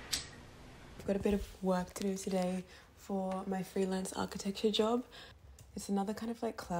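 A woman speaks into a phone nearby.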